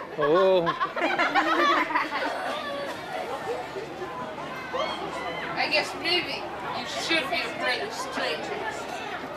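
Several adults talk and call out animatedly nearby.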